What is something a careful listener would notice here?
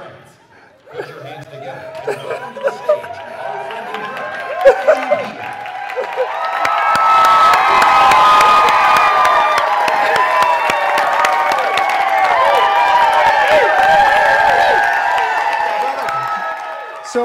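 A crowd claps and cheers loudly in a large room.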